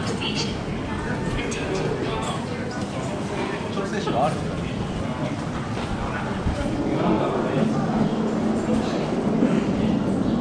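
Footsteps tap on a hard floor in a busy echoing passage.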